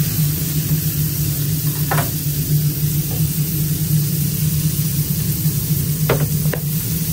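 Burger patties sizzle on a hot griddle.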